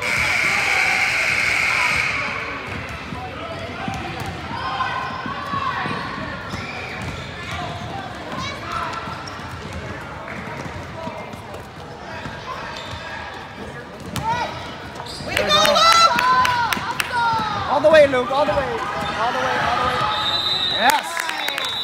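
A crowd of spectators talks and cheers, echoing in a large hall.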